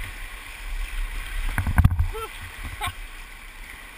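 A paddle splashes into the water.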